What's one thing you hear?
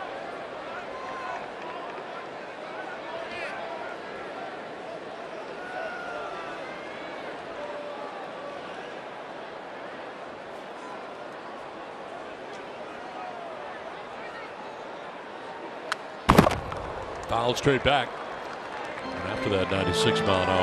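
A crowd murmurs steadily.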